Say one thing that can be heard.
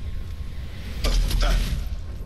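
A magical blast bursts with a loud whoosh.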